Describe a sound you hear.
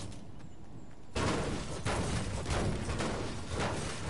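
A pickaxe clangs repeatedly against a car's metal body.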